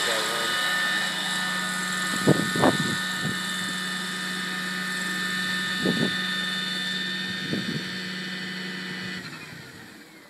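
Rotor blades whir close by.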